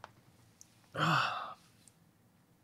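A young man groans loudly into a close microphone.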